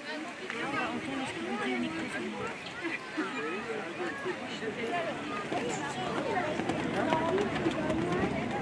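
Horses' hooves thud softly on sand as they trot.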